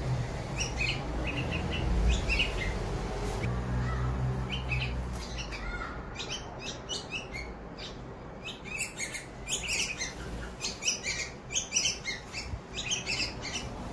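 Baby birds chirp and cheep loudly and repeatedly.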